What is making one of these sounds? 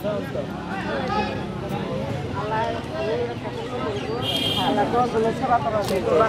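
A crowd of men, women and children chatter nearby outdoors.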